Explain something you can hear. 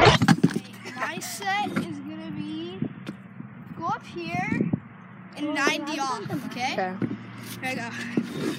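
A boy talks excitedly close by.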